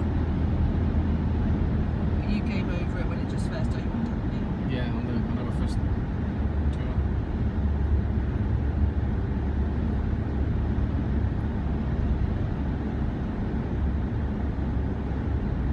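A car's engine and tyres rumble steadily on a motorway, heard from inside the car.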